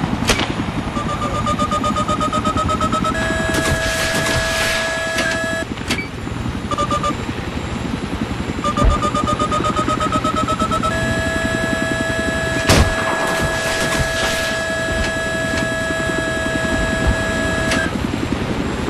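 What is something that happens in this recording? A high electronic lock-on tone sounds and holds.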